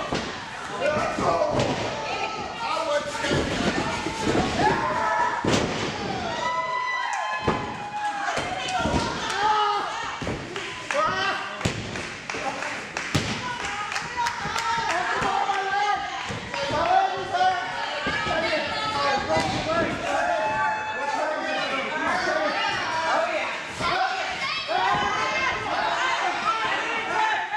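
A crowd shouts and cheers in an indoor hall.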